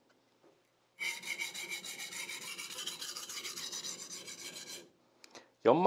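A knife blade scrapes back and forth on a whetstone in quick, even strokes.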